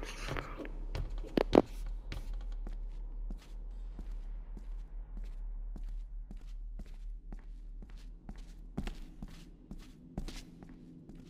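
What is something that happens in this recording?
Footsteps crunch over debris.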